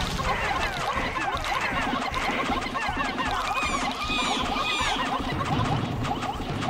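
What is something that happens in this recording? Game creatures thud and pop as they attack a large beast.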